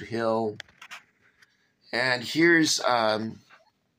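A page of a book turns with a soft rustle.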